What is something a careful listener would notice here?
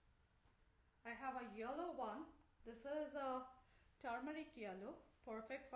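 A woman speaks with animation, close up.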